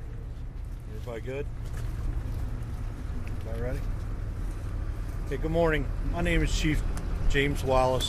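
A middle-aged man speaks outdoors into microphones in a calm, serious voice.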